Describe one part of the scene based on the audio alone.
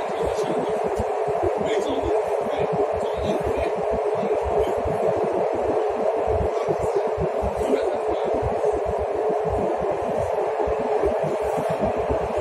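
A subway train rumbles and roars steadily along the track.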